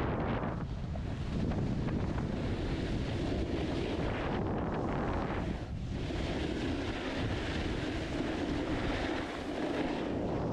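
Wind rushes past a moving rider.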